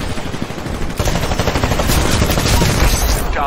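Explosions boom close by.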